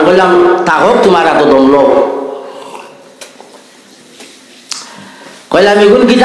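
A middle-aged man preaches loudly and with fervour into a microphone, heard through loudspeakers with an echo.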